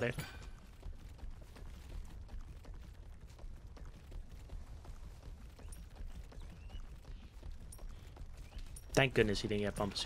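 Heavy footsteps thud steadily as a creature runs.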